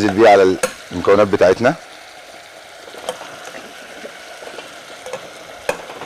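A spoon clinks against a metal pot.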